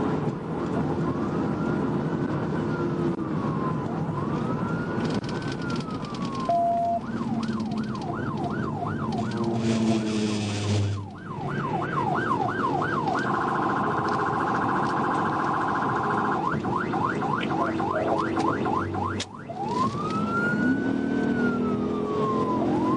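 A siren wails and yelps close by.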